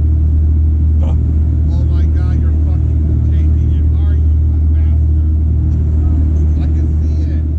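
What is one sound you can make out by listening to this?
An older man talks with animation close by.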